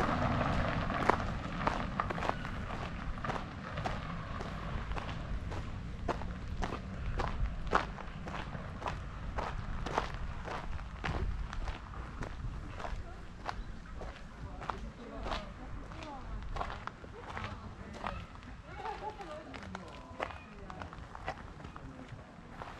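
Footsteps crunch steadily on a gravel path outdoors.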